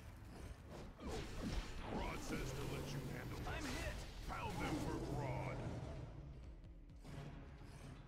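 Blows and energy blasts crash in a fight.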